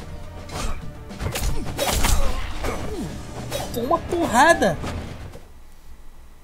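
Sharp blows and clashes of a fight ring out.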